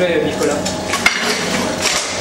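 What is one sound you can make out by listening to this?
A metal lid clanks shut.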